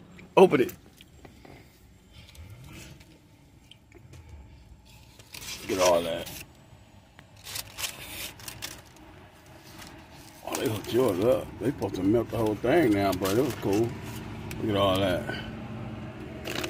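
Paper wrapping crinkles and rustles.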